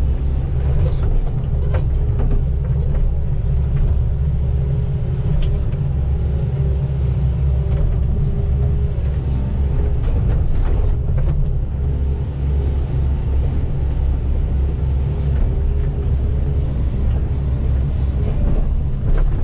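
A diesel hydraulic excavator runs under load, heard from inside the cab.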